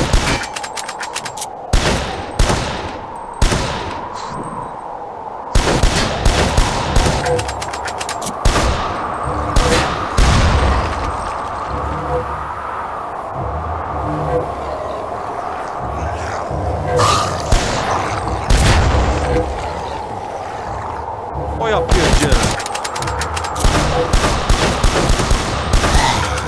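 Shotgun blasts go off repeatedly, with short echoing tails.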